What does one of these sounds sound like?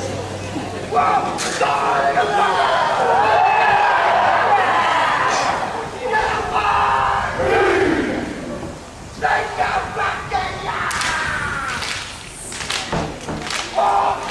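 A group of young men shout a loud rhythmic chant in unison.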